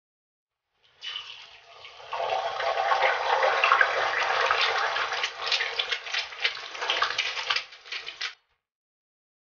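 Hot oil sizzles and crackles steadily as an egg fries in a pan.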